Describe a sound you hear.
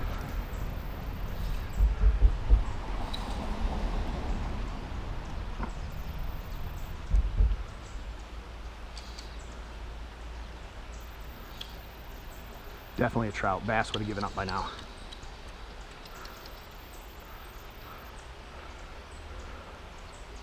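River water flows and ripples close by outdoors.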